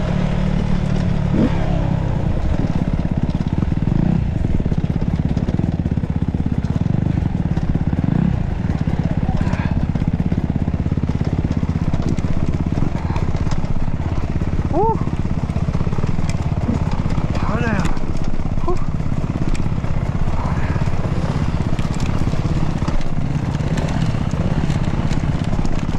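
A dirt bike engine revs and putters close by.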